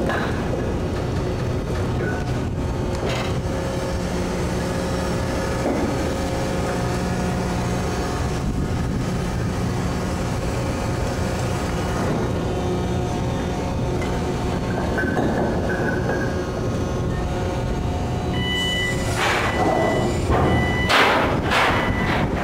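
A crane's motor hums steadily.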